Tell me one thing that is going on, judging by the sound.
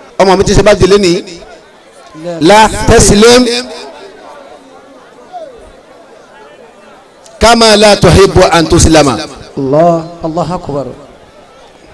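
A man speaks forcefully into a microphone, heard loudly through a loudspeaker in open air.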